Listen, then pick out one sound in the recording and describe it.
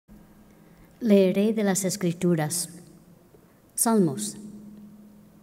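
A young girl speaks into a microphone in an echoing hall.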